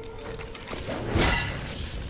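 Electric sparks crackle and hiss.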